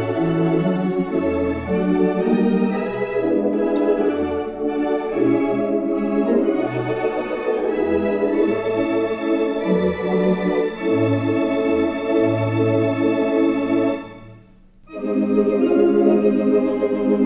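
An organ plays a slow, sustained melody with full chords.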